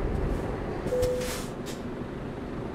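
Air brakes hiss briefly as a truck comes to a stop.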